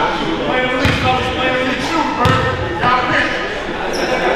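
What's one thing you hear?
Young men call out to each other across an echoing gym.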